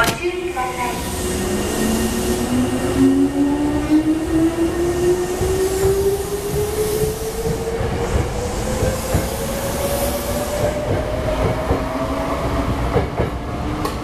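An electric train motor whines, rising steadily in pitch.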